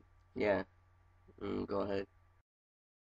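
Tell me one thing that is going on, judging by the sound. A teenage boy speaks quietly, close to the microphone.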